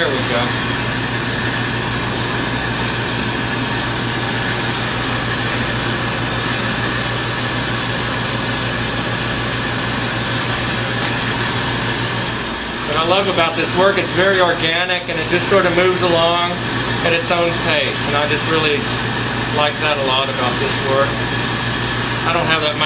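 A gas torch flame hisses steadily.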